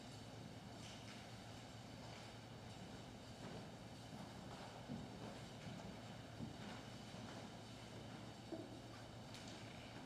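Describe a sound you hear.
Footsteps shuffle softly across a wooden floor in an echoing hall.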